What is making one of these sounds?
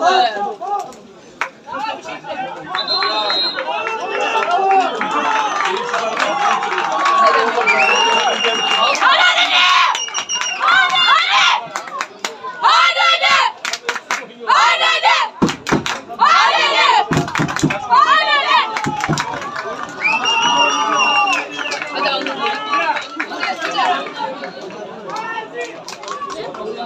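Men near the microphone talk and shout with animation outdoors.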